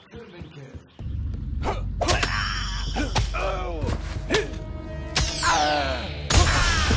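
Metal weapons clash and clang in a fight.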